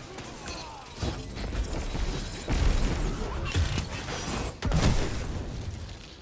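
Gunfire from a video game rifle cracks in bursts.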